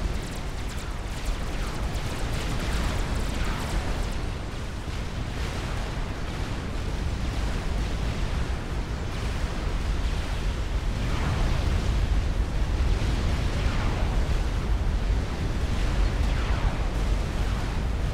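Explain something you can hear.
Explosions boom again and again.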